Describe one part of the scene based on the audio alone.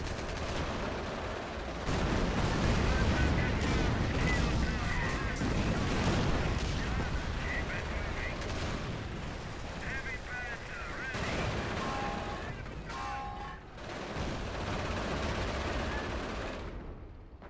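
Explosions boom and rumble heavily.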